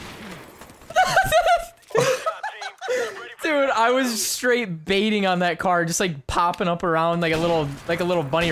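A young man laughs excitedly into a close microphone.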